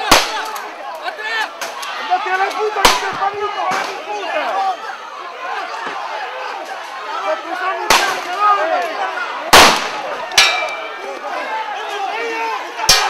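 A crowd of men and women shouts and yells close by.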